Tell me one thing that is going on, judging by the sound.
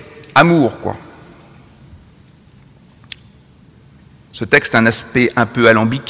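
A man speaks calmly through a microphone in a large echoing hall.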